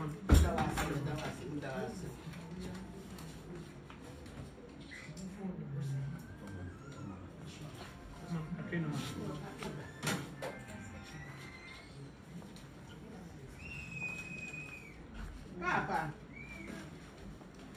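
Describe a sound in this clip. Men and women talk nearby in a room, with voices overlapping.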